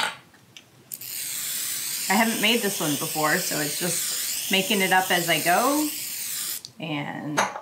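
A spray can hisses in a long burst.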